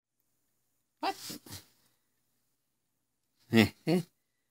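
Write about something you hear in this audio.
A man speaks in short bursts close to the microphone.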